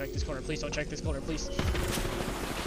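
A shield battery charges with a rising electronic whir.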